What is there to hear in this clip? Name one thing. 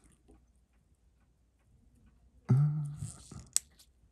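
Metal tweezers tap lightly against a watch movement.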